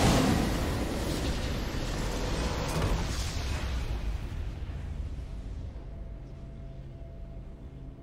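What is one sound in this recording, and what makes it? A triumphant game fanfare plays and slowly fades.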